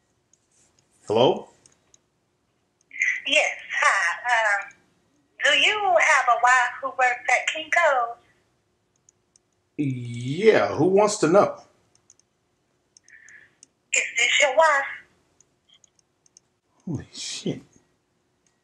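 A man speaks into a phone close by, in short bursts with pauses.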